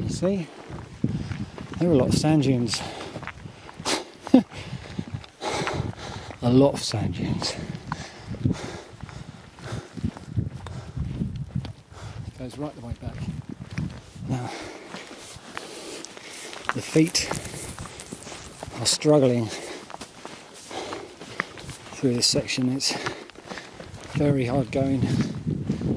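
A man talks breathlessly close to a microphone.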